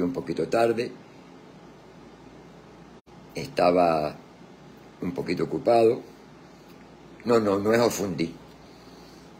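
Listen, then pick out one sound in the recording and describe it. An elderly man speaks calmly and slowly, close to the microphone, with pauses between phrases.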